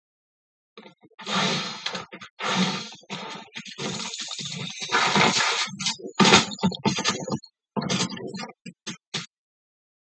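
Game sound effects of a blade swooshing play from a television.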